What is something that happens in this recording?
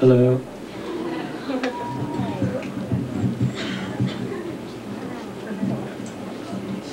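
A young man speaks into a microphone.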